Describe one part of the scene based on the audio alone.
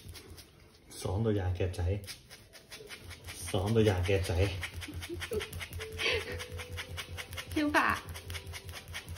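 A dog groans and grumbles with pleasure.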